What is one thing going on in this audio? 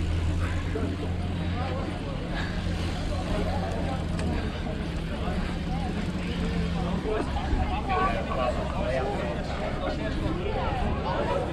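A crowd of people chatter and cheer nearby.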